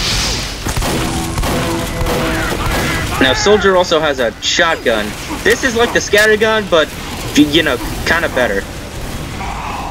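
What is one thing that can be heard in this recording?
Shotgun blasts go off in quick bursts.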